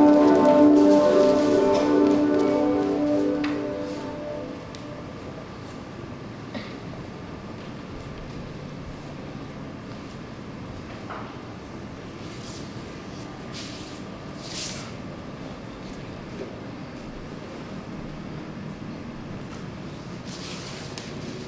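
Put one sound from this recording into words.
Bare feet shuffle and thud softly on a wooden stage floor.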